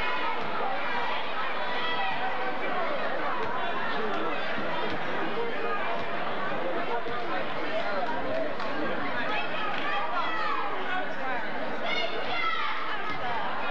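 Cheerleaders chant loudly together.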